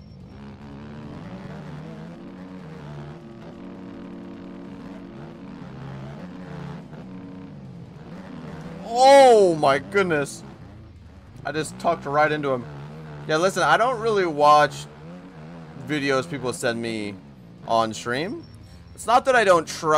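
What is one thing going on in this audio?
A motorcycle engine drones and revs up and down sharply.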